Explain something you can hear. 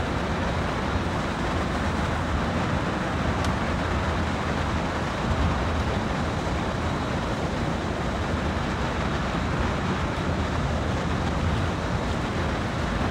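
Train wheels clatter and roar over the rails.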